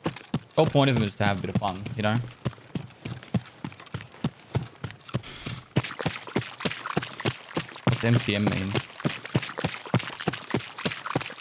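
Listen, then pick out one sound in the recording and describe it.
Footsteps crunch steadily over the ground.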